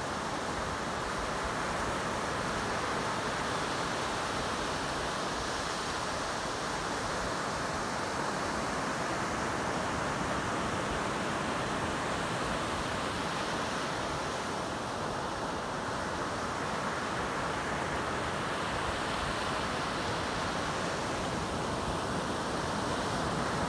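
Waves break and wash up onto the shore steadily.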